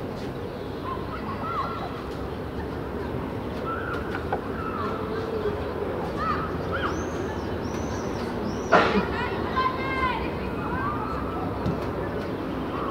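Young players shout to each other across an open outdoor pitch.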